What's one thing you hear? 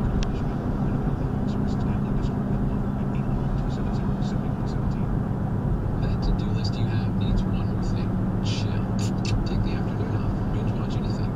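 Tyres roll on a paved road with a steady low rumble.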